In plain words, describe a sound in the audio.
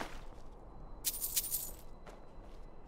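Coins jingle as a purse is picked up.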